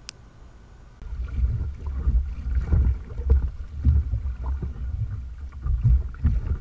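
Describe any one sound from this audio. Water splashes and sloshes against a small boat.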